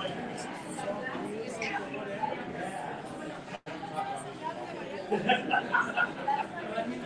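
Several adults chatter together in a room, heard from a distance.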